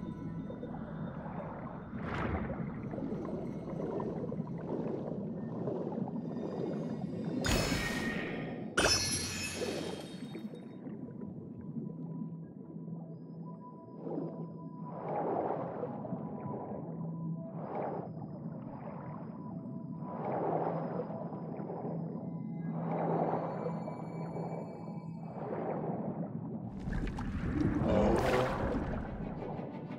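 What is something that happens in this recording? A game character swims underwater with bubbling, rushing water sounds.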